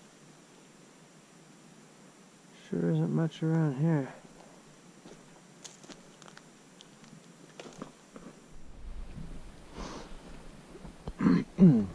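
Footsteps crunch on gravel and dry grass.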